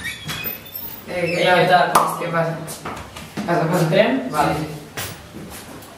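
Teenage boys talk and greet each other with animation, close by.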